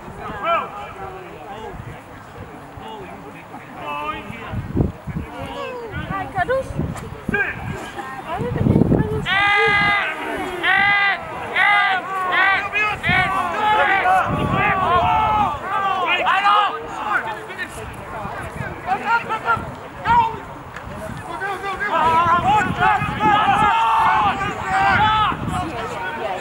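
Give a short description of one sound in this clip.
Men shout and call out across an open field outdoors.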